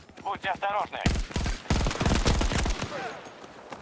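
A rifle fires a rapid burst of shots close by.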